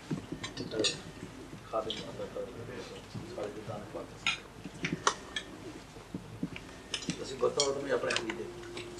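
Men talk quietly among themselves nearby.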